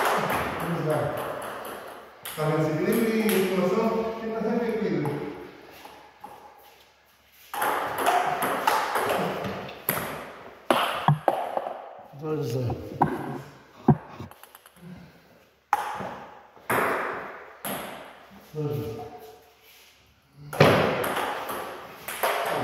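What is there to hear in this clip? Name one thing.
Table tennis balls click on paddles and the table in a large echoing hall.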